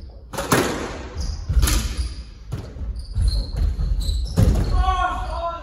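A squash ball smacks off racquets and walls in an echoing court.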